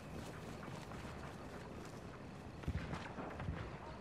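Footsteps crunch softly through undergrowth.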